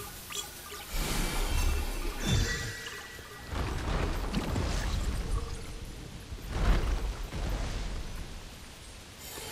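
A staff whacks a creature with heavy thumps.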